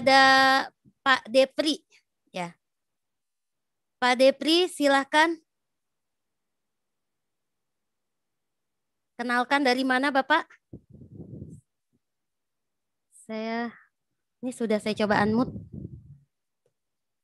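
A woman speaks with animation in short bursts over an online call.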